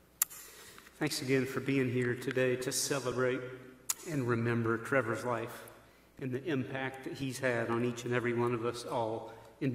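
A man speaks calmly into a microphone, echoing in a large hall.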